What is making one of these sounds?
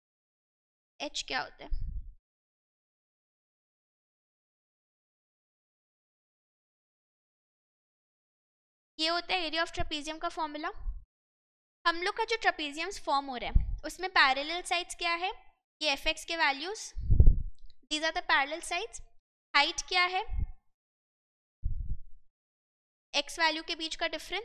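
A young woman speaks calmly and clearly into a close microphone, in short bursts with pauses.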